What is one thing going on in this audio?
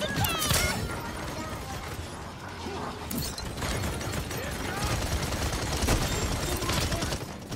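Video game battle effects whoosh, crackle and blast.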